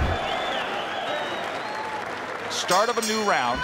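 A crowd cheers and whistles in a large arena.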